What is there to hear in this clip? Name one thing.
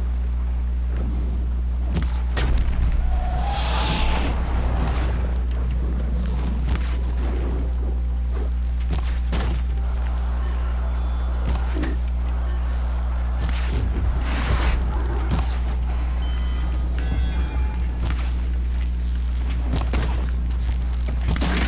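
A bowstring twangs as arrows are shot.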